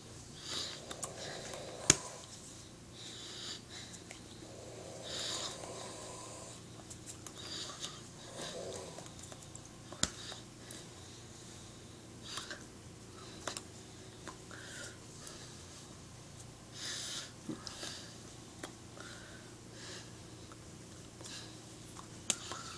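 A middle-aged woman breathes and makes soft hissing mouth sounds close by.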